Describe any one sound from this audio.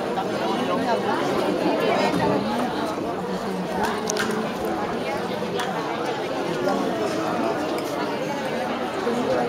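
Instruments play a lively folk tune.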